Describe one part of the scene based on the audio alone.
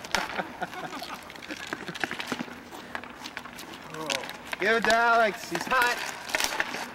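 Hockey sticks clack and scrape on asphalt.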